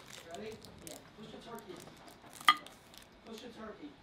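A candy wrapper crinkles in a hand.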